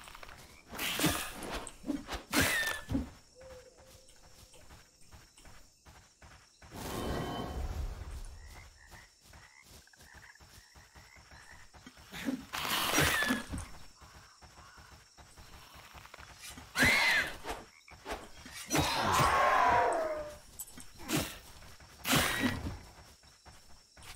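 Blows land in a game fight with sharp hits.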